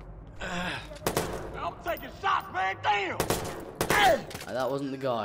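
Gunshots crack from a rifle in short bursts.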